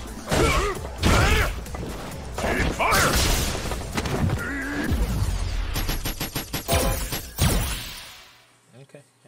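Video game punches and energy blasts crash loudly.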